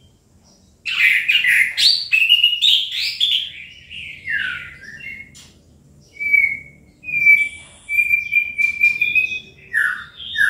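A caged songbird sings loud, rapid, warbling phrases close by.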